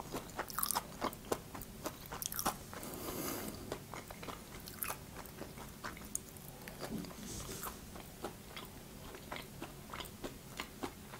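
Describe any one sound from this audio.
A young woman chews crunchy food close to a microphone with crisp, wet mouth sounds.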